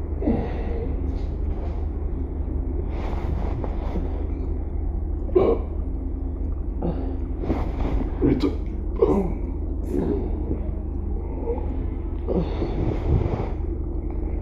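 A man groans and mutters in discomfort.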